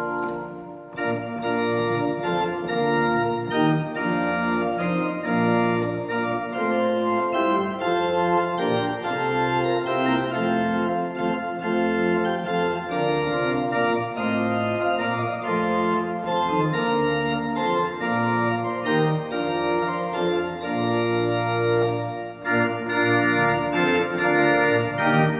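A pipe organ plays a full, festive hymn tune in a reverberant space.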